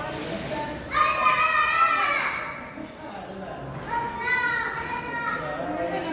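A small child calls out in a high voice.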